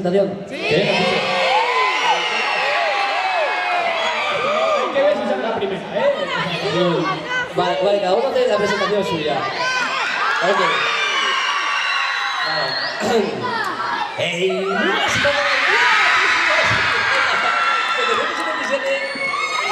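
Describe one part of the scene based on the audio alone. A large crowd of young people screams and cheers excitedly in a big echoing hall.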